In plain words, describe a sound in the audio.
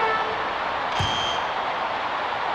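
A buzzer sounds briefly.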